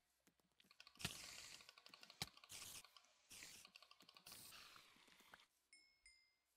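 A spider hisses and screeches.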